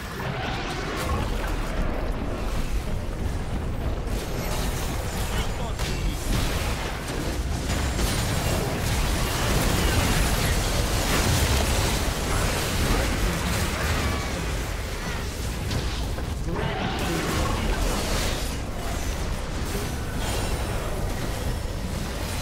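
Game spell effects and attacks clash and crackle in a fierce battle.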